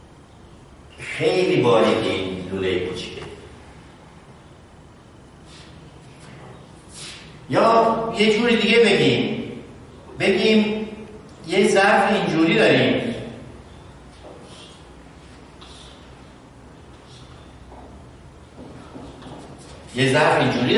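A middle-aged man speaks with animation in a slightly echoing room.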